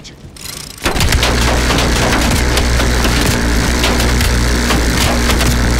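A heavy rotary machine gun fires a long, rapid roaring burst.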